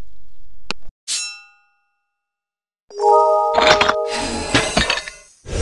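Chiming tones ring as gems clear.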